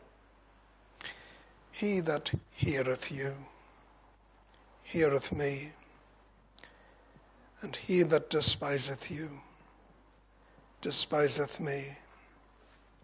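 An elderly man reads aloud slowly through a microphone, with pauses between phrases.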